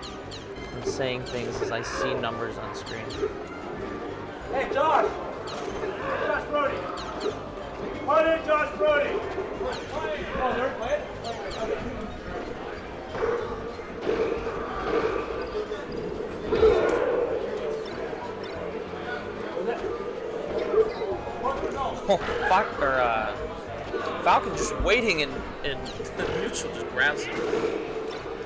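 Cartoonish fighting game hits and blasts pop and crack.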